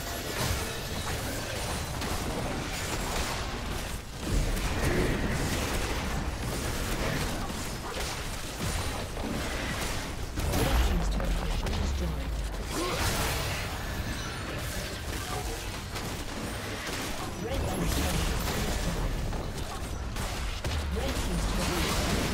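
Magic blasts, hits and explosions crackle and boom in a busy video game battle.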